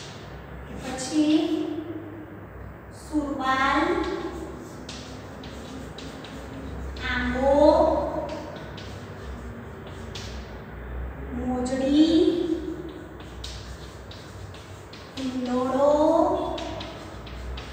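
A woman reads out slowly in drawn-out phrases, close by.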